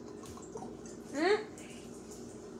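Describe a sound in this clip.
Water bubbles and gurgles briefly in a glass pipe.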